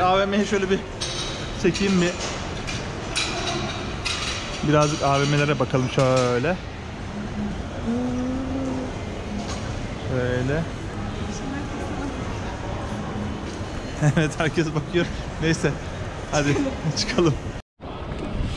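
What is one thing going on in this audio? Crowd murmur echoes in a large open hall.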